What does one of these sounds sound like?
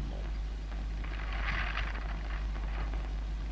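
Paper crinkles and rustles.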